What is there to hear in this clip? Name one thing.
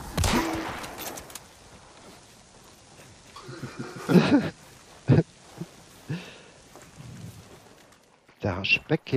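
Flames crackle and roar close by.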